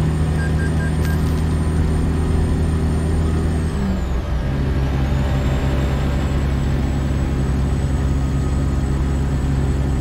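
A heavy truck engine drones steadily, briefly dipping as the gear changes.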